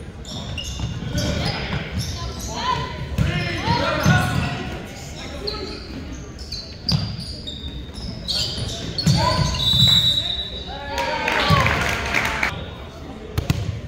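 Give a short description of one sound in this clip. Young men shout and call out in an echoing gym.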